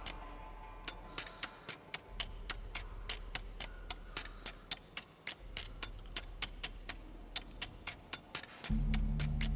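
Metal taps and scrapes rapidly against a stone wall.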